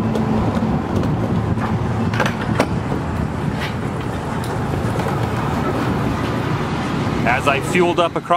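A fuel pump hums steadily as fuel flows into a tank.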